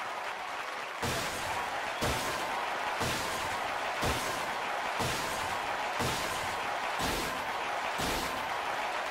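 Confetti bursts pop in a video game, in a quick, even series.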